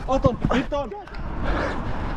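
A young man shouts nearby.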